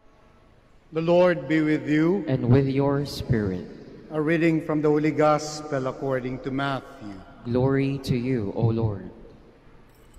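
A man chants in a sung voice through a microphone in an echoing hall.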